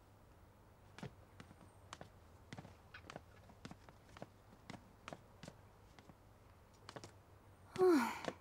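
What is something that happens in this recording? Footsteps click steadily on a hard floor.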